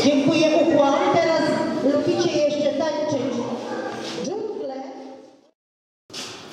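A group of children sing together in a room.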